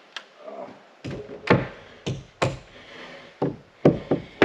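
A hammer strikes wood in sharp, ringing blows.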